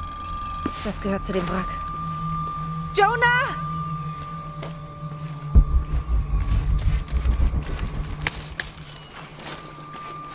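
Footsteps tread over leaves and soft earth.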